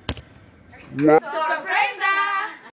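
A teenage girl speaks loudly and cheerfully close by.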